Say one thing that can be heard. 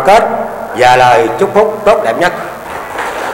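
An elderly man speaks loudly into a microphone over loudspeakers.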